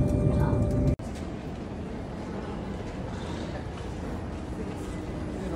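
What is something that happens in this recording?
Footsteps tap on a hard floor in a large, echoing hall.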